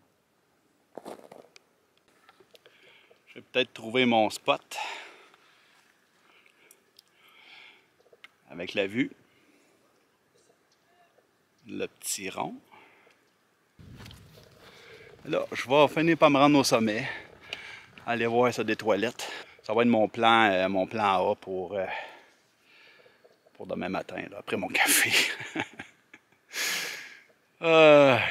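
A middle-aged man talks with animation close to a microphone, outdoors.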